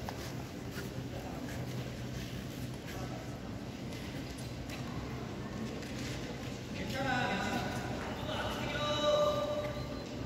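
Ice skates scrape and swish across the ice in a large echoing hall.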